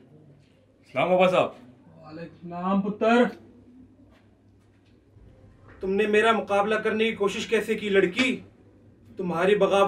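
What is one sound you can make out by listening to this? A man speaks loudly and forcefully nearby.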